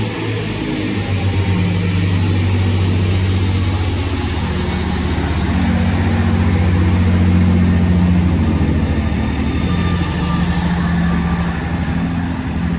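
A diesel train engine rumbles and throbs steadily close by as the train pulls out.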